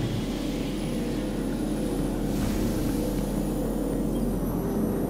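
An energy beam hums steadily.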